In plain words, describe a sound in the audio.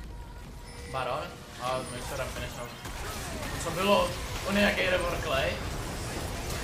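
A young man speaks with animation, heard close through a microphone.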